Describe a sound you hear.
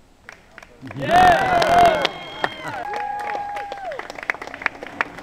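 Spectators cheer and shout loudly outdoors.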